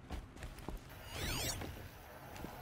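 A bright shimmering tone sweeps upward as an electronic scanner switches on.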